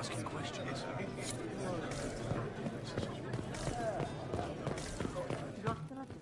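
Footsteps tread on stone floors.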